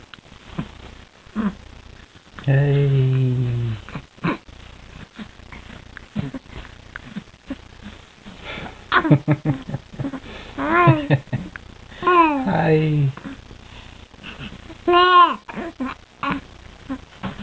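A baby coos and squeals up close.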